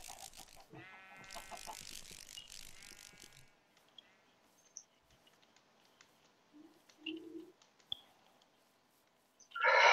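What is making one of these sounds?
Footsteps tread softly on grass.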